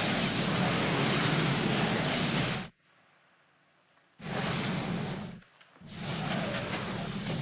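Spell blasts and blows crackle and clash in a fight.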